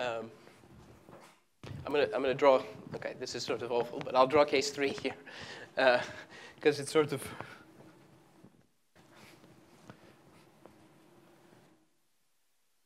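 A man lectures calmly in a large echoing hall.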